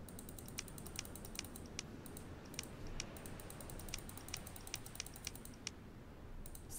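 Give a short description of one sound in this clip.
Hooves clop slowly on soft ground.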